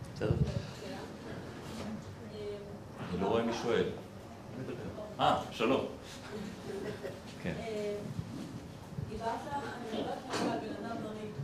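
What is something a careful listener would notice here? A man speaks into a microphone, heard through a loudspeaker in a reverberant space.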